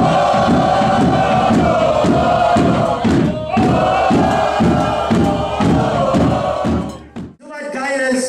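Drums pound in a steady, fast beat.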